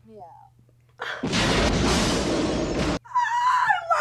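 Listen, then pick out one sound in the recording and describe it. A young woman screams loudly close by.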